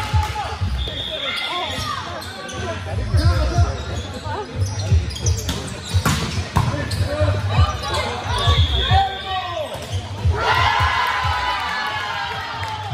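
Players shout and call to each other in a large echoing hall.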